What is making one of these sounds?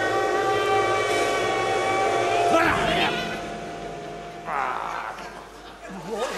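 A woman shouts loudly on a stage.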